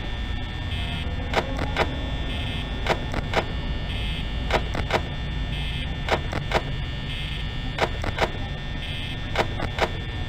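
A desk fan whirs steadily.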